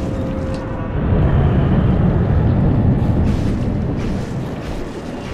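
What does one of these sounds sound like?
A deep rumbling roar swells and fades.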